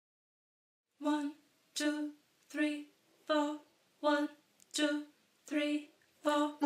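A woman sings short, evenly spaced notes over an online call.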